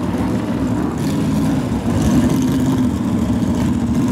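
Engine revs rise sharply in bursts.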